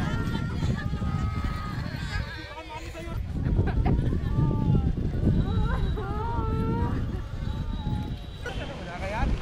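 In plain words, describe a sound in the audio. Women wail and sob loudly nearby.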